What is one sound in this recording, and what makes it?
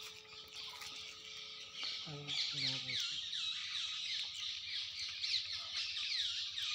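Young monkeys suck and slurp milk from a bottle.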